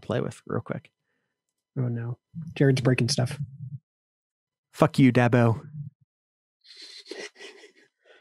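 A man with a deep voice talks casually into a microphone over an online call.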